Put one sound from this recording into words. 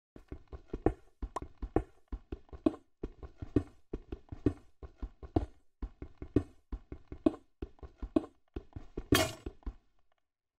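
Stone blocks crumble and break.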